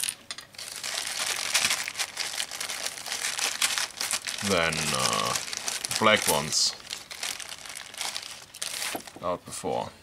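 Small metal rivets rattle in a crinkling plastic bag.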